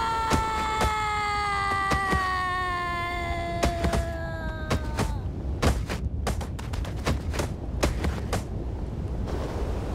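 A body thumps and clatters as it tumbles on a tiled roof.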